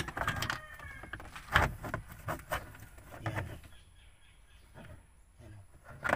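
Plastic trim creaks and rattles as it is pulled loose.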